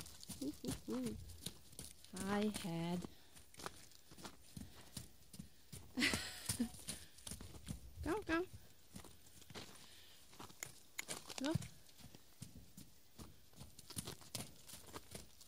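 A horse trots with soft hoofbeats on snowy, muddy ground.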